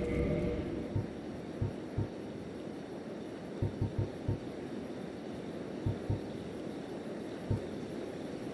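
Soft menu clicks tick one after another.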